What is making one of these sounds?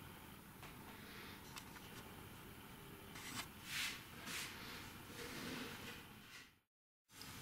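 A wooden box knocks and scrapes softly as it is handled.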